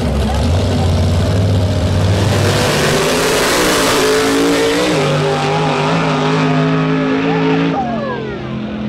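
Drag race cars roar as they accelerate hard.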